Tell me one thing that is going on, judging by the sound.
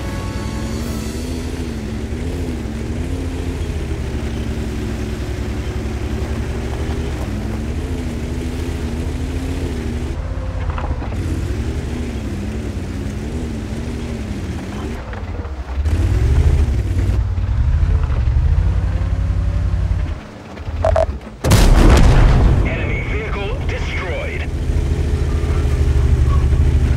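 A tank engine rumbles and whines steadily.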